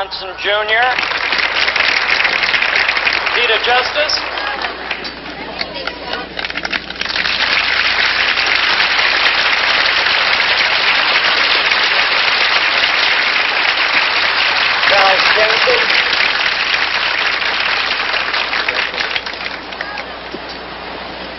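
A large crowd claps and applauds outdoors.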